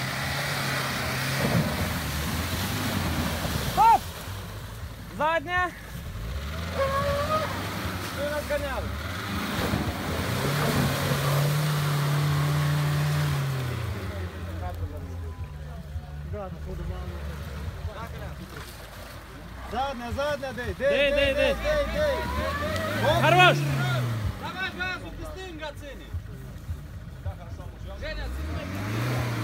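An off-road car engine revs hard, rising and falling.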